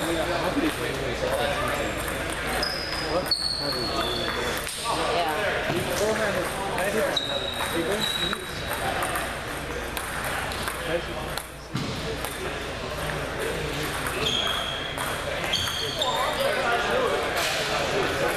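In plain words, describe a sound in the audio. Ping pong balls click against paddles and tables in a rally.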